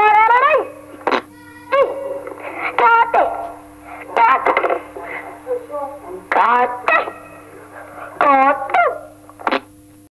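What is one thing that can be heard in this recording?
Voices come in bursts through a radio loudspeaker, with animation.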